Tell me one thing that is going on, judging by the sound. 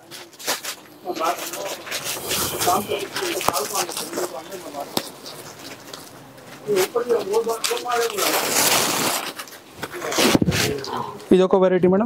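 Fabric rustles as it is unfolded and shaken.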